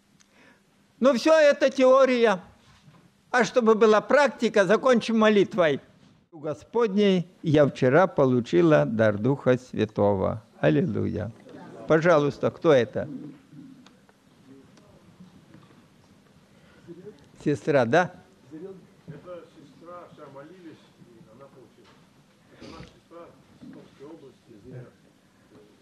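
An elderly man speaks with animation into a microphone over loudspeakers in a large echoing hall.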